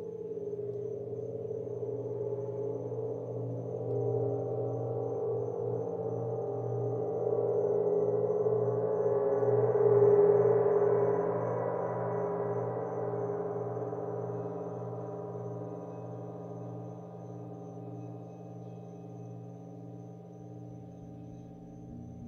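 A gong swells in a deep, shimmering wash and slowly fades.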